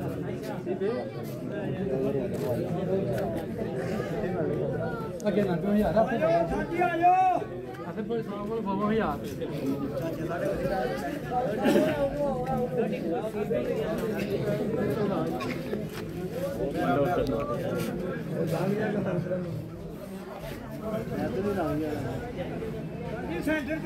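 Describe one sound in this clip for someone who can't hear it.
A crowd of men chatter all around, close by.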